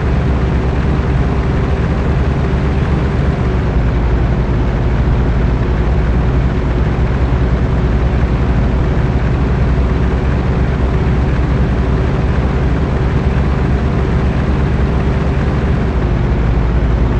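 Tyres rumble on a rough road.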